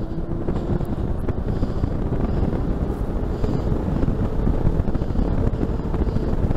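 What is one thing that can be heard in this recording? Wind rushes loudly past as a bicycle speeds downhill.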